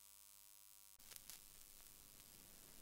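A vinyl record crackles and hisses softly as it plays.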